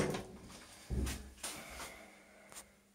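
A door bolt clicks and scrapes.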